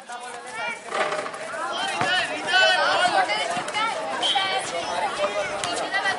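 A crowd of children and young people chatter and shout outdoors.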